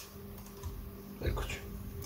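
A small tool clicks and scrapes against plastic parts.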